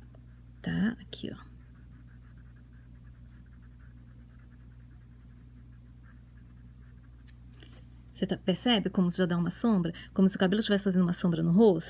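A pencil scratches softly on paper.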